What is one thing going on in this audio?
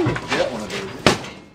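A sledgehammer strikes with a sharp bang.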